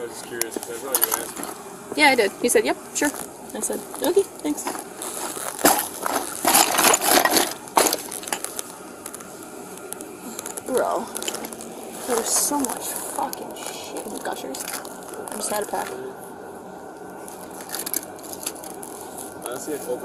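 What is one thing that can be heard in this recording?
A leather bag rustles as hands rummage through it.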